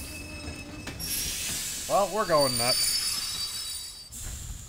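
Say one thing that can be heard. A train's brakes hiss.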